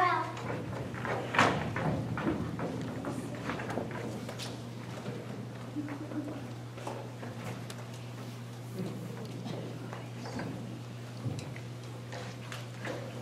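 Objects clatter on a wooden stage floor.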